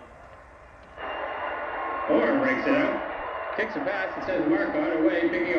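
A television plays loudly in a room.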